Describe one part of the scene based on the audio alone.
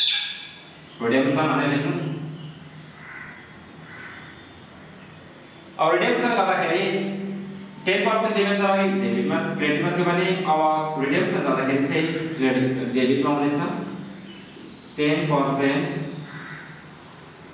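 A man speaks calmly, as if explaining, close by.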